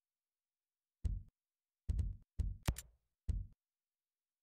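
Short game menu clicks sound several times.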